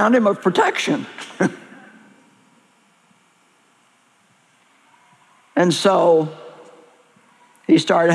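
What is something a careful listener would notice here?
An older woman speaks with emphasis through a microphone, with pauses.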